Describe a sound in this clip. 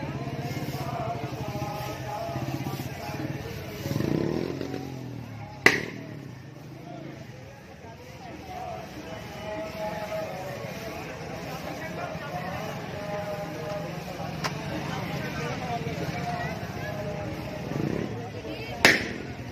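A crowd of men and women chatters and calls out nearby, outdoors.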